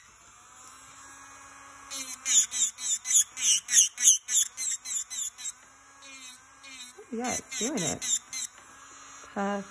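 A small electric nail drill hums steadily.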